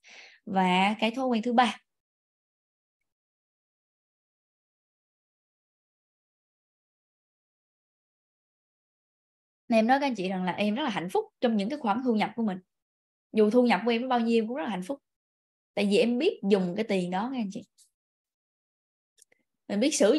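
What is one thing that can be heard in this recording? A young woman speaks with animation into a nearby microphone.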